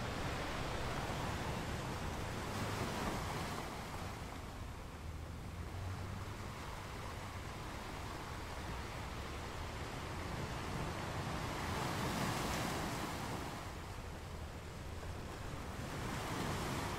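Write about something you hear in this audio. Ocean waves roll in and crash against rocks with a steady, surging roar.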